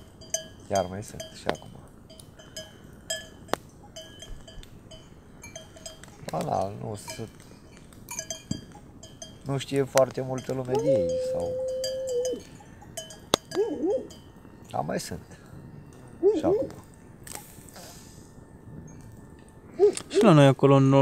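A campfire crackles and pops close by.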